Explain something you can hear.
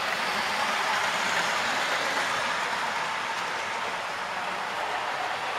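A model electric train rolls along the track with a steady hum and rattle.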